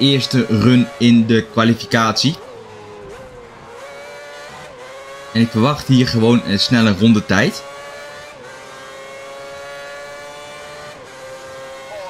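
A racing car engine whines at high revs, slowly rising in pitch.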